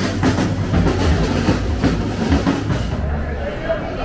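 Drums beat loudly outdoors among a crowd.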